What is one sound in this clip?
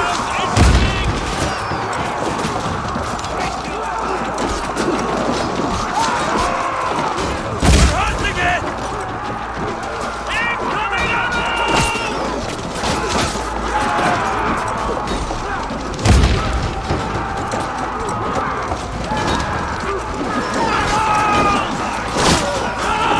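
A heavy battering ram slams against a wooden gate with deep booming thuds.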